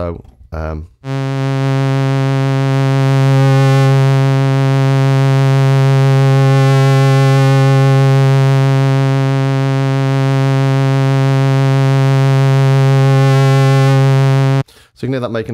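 A synthesizer holds a loud, low, buzzing note whose tone slowly shifts.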